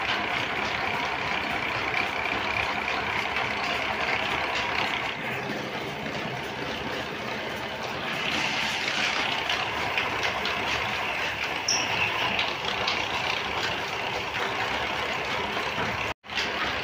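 A machine runs with a steady, noisy whir.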